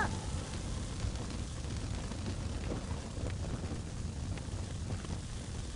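A fire roars steadily with a low rumble.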